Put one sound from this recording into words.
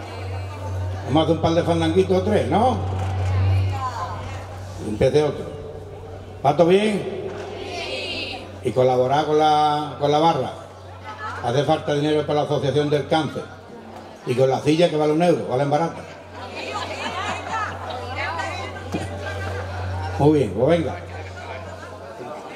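A man sings loudly into a microphone through a loudspeaker.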